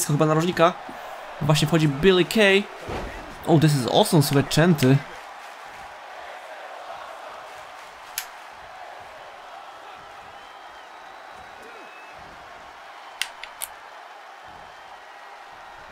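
A large crowd murmurs and cheers steadily in a big arena.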